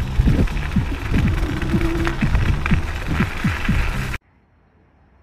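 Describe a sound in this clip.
Bicycle tyres crunch and rumble over packed snow.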